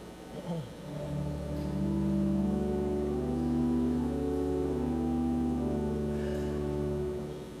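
A pipe organ plays a slow, steady chord progression.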